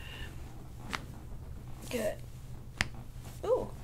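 A joint pops under pressing hands.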